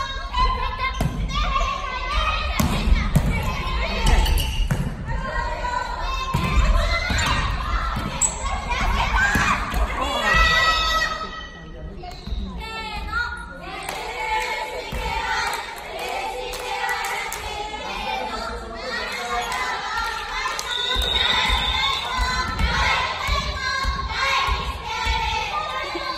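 Young people shout and call out in a large echoing hall.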